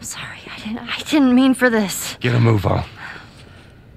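A girl speaks in distress, close by.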